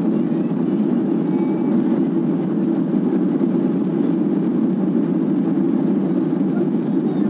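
Jet engines roar steadily, heard from inside an airplane cabin.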